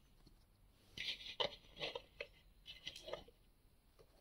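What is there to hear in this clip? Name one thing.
A small wooden stand clatters as it is handled and set down.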